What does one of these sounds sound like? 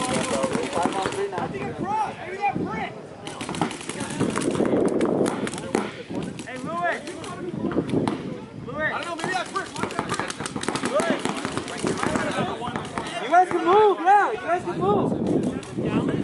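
A paintball marker fires in rapid bursts of sharp pops.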